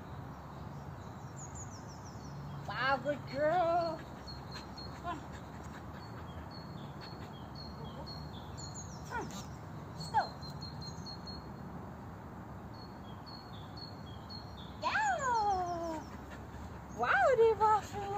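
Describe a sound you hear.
Birds chirp in the distance outdoors.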